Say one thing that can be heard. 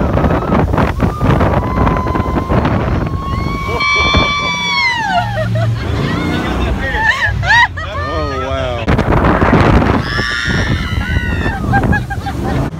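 Young women on a boat scream and laugh excitedly.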